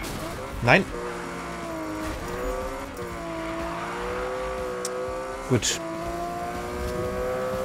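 A car engine drones steadily, rising and falling in pitch as it accelerates.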